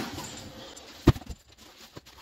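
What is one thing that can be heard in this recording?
A box thumps down.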